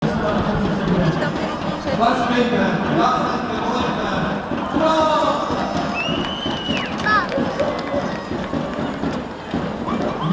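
A large outdoor crowd chatters in a busy hum of many voices.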